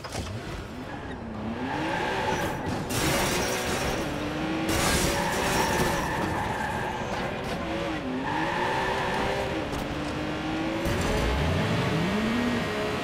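A sports car engine roars and revs as it speeds off.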